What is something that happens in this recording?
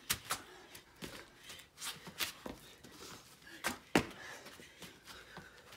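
Sneakers thud and scuff on a stone patio.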